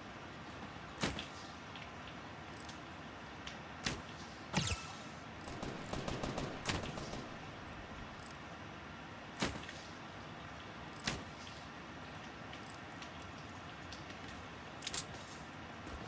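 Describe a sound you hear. Loud rifle shots crack out one at a time, with short echoes.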